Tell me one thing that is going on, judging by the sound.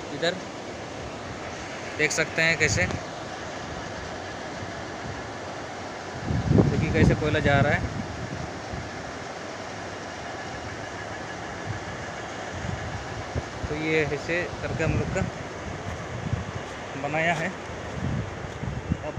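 A conveyor belt runs outdoors with a low rumble.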